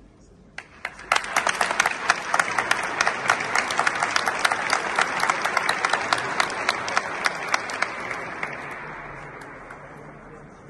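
A crowd applauds loudly in an echoing hall.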